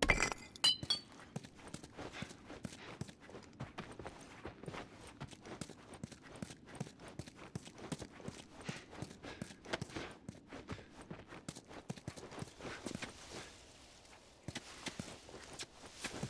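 Footsteps crunch and scuff on the floor and on gravel.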